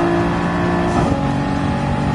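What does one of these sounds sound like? A car engine's pitch drops suddenly as a gear shifts up.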